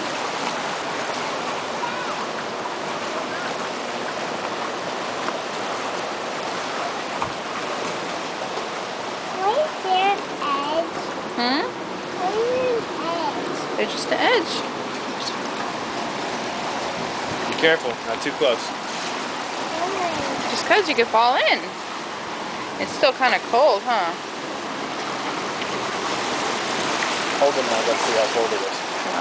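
Waves wash and splash against rocks close by.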